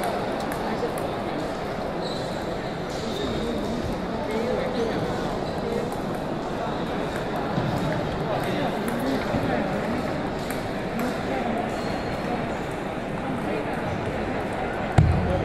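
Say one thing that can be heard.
A table tennis ball clicks back and forth on paddles and a table.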